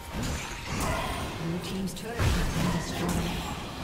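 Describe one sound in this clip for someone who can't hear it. A tower collapses with a heavy crash.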